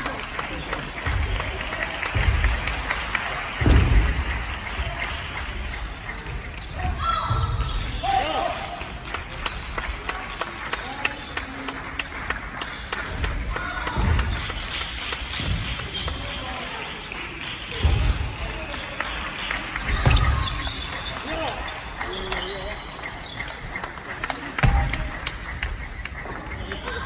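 A table tennis ball clicks back and forth between paddles and the table in a large echoing hall.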